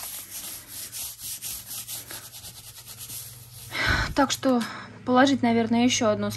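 A hand rubs and scrapes across dry chalk lumps.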